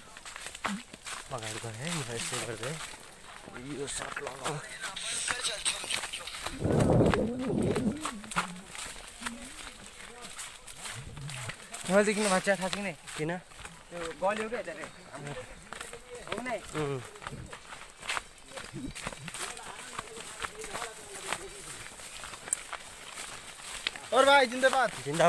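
Footsteps crunch on a dirt trail with dry leaves.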